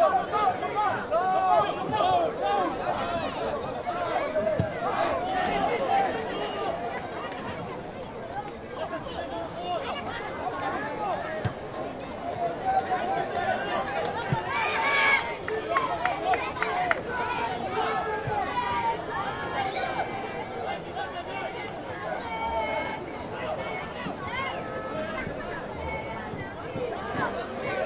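A football is kicked now and then with dull thuds.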